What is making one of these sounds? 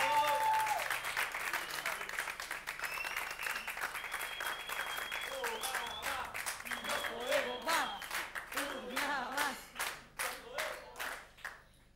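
A woman sings into a microphone.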